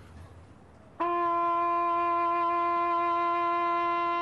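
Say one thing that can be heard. A trumpet plays a long, steady note.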